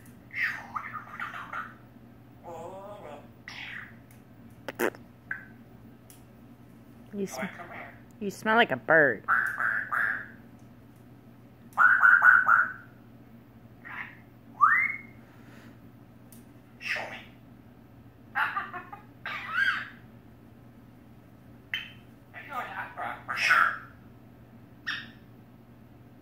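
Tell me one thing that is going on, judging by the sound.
A parrot chirps, whistles and chatters in bursts close by.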